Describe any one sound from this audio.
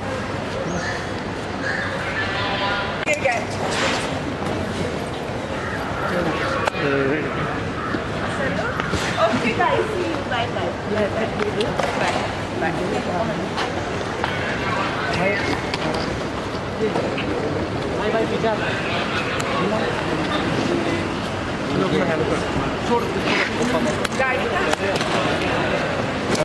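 Several men shout and call out close by.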